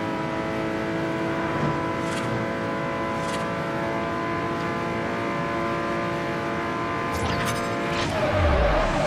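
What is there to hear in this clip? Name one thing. A racing car engine roars at a steady high pitch.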